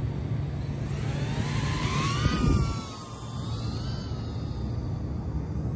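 A small drone's motors whine and buzz, rising in pitch as it lifts off.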